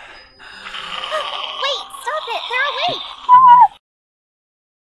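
A young woman talks excitedly and squeals close to a microphone.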